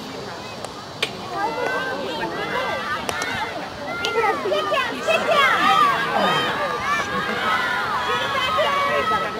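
Hockey sticks clack against a ball.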